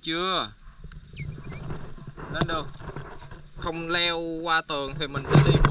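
A small animal squeals close by.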